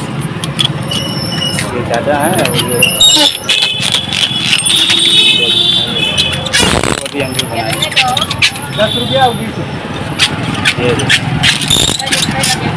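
A rubber balloon squeaks and rubs as it is twisted by hand.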